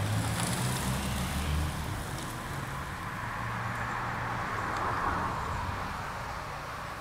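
A car engine hums as the car drives slowly away.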